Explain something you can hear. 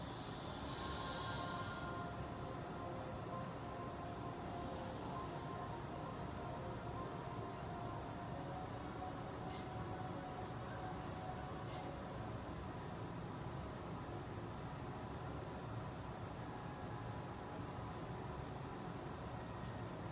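Game music plays through a television speaker.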